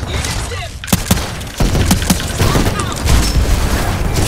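An explosion booms and crackles with electricity.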